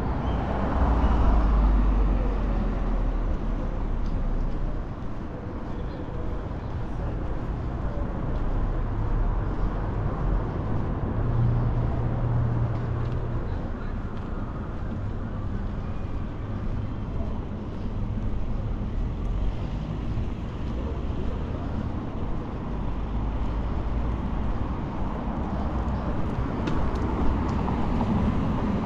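Low traffic noise hums steadily outdoors.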